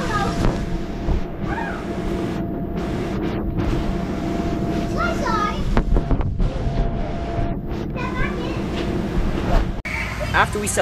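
Balloons rub and squeak against each other up close.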